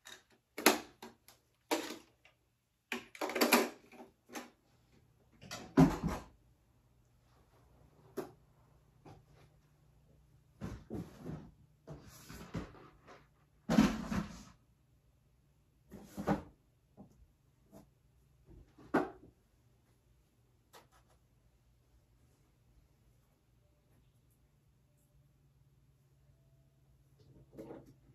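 Plastic toys rattle and clatter as they are handled.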